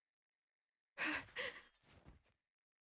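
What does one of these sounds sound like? A metal blade clatters onto a stone floor.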